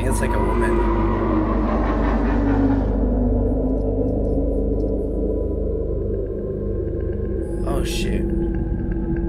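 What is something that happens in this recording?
A young man speaks quietly into a close microphone.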